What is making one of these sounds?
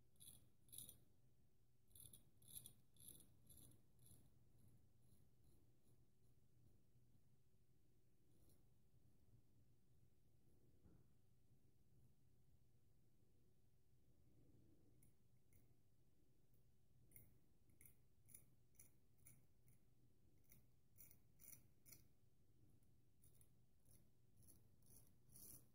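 A razor blade scrapes through stubble in short, rasping strokes, close by.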